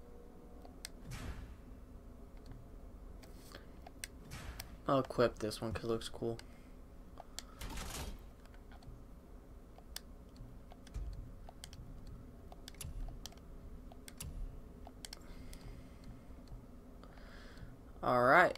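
Short soft clicks tick now and then as a game menu is browsed.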